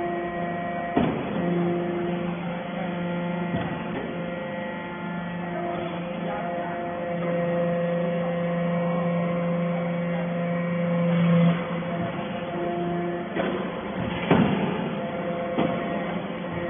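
Metal pieces clank and knock inside a machine.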